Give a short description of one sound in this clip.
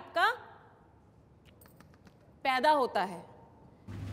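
A woman speaks with animation through a microphone in an echoing room.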